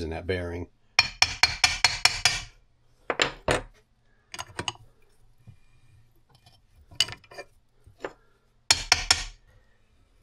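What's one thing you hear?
A hammer strikes metal in sharp, quick blows.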